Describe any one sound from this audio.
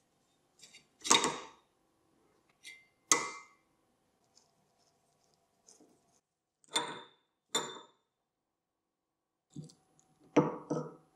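Metal parts clank sharply and ring briefly.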